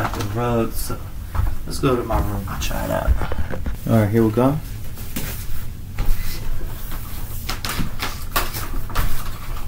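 Feet thump and shuffle on a wooden floor.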